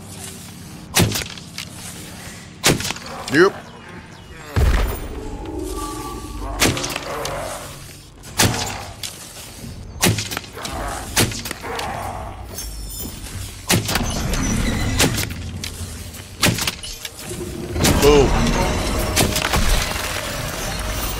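A bowstring twangs sharply as arrows are loosed, again and again.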